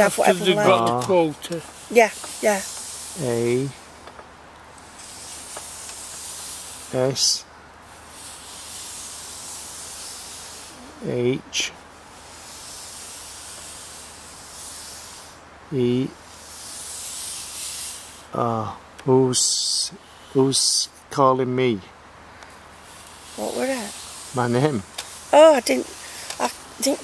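A small pointer slides and scrapes softly across a wooden board.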